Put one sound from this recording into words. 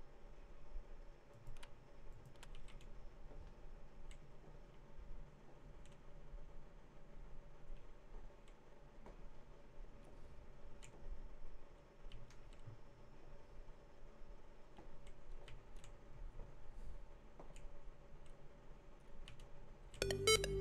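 Footsteps tread on a wooden floor indoors.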